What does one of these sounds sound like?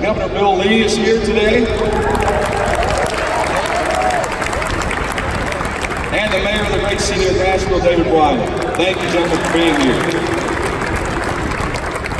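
A man speaks with enthusiasm through a microphone and loudspeakers in a large echoing hall.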